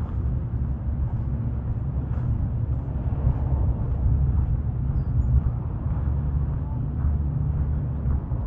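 Footsteps tap softly on pavement.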